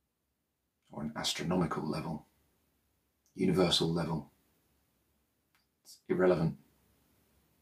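A man speaks calmly and softly, close to a microphone, in short phrases with pauses.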